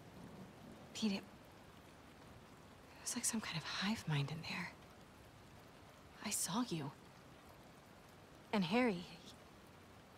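A young woman speaks gently and warmly.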